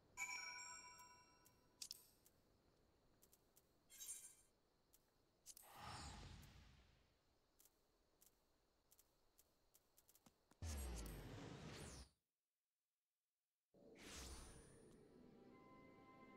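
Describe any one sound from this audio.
Soft interface clicks tick now and then.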